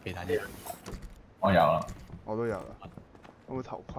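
A door swings open.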